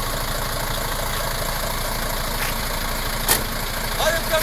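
A truck cab door slams shut.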